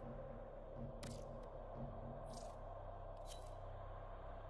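Menu selections click sharply a few times.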